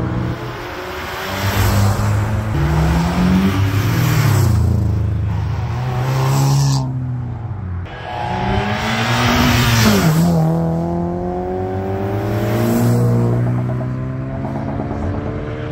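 Car engines roar loudly as cars speed past one after another.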